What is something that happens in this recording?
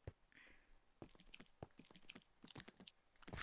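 Footsteps tread quickly on stone.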